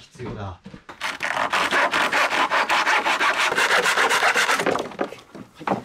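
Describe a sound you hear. A hand saw rasps quickly through wood.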